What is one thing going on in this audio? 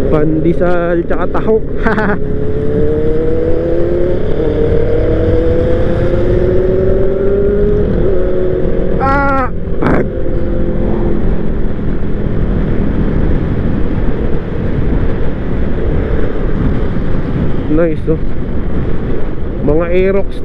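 Wind rumbles steadily over the riding scooter.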